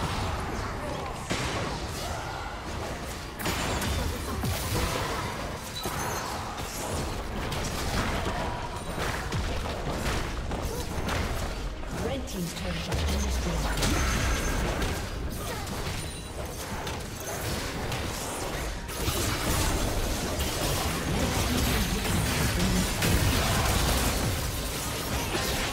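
Magic blasts crackle and whoosh in a fast, busy fight.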